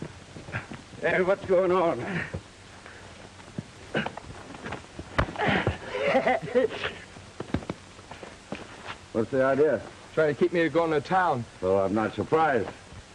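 Adult men talk with animation close by.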